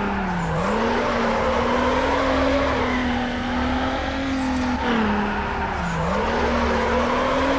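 Tyres screech while a car drifts around corners.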